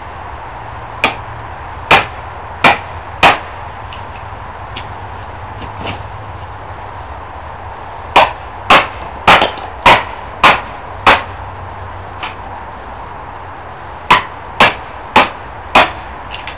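A hammer strikes metal sharply in bursts of blows.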